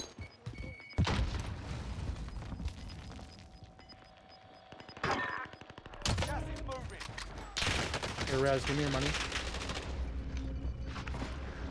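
Gunshots crack loudly in quick bursts.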